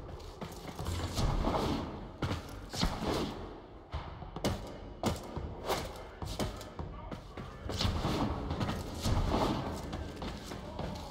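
Quick whooshes sound as a game character leaps and slides.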